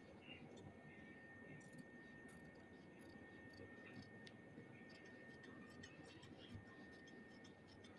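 Scissors snip and slice through paper.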